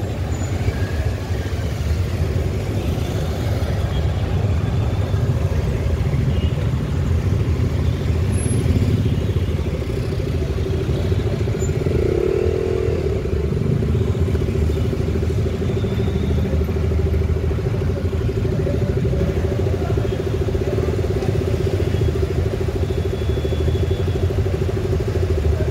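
Engines rumble and idle in busy street traffic.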